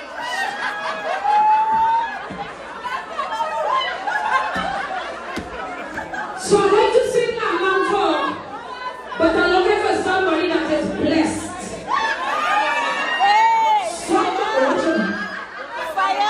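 A crowd of women cheers and whoops excitedly.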